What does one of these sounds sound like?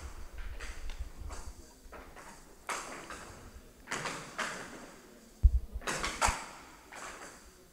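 A ball with bells inside rattles as it rolls across the table.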